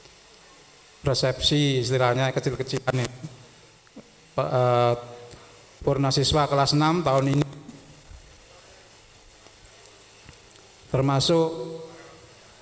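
An older man speaks through a microphone and loudspeakers in short phrases, with pauses.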